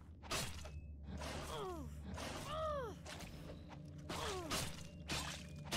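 A creature screeches in short, falling cries.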